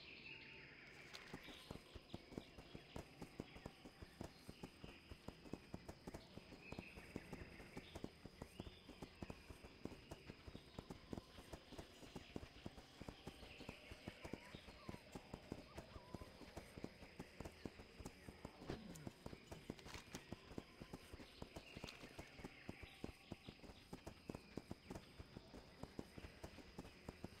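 Hooves of a ridden mount gallop on a dirt path.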